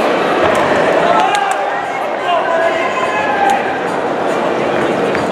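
A crowd chatters and shouts in a large echoing hall.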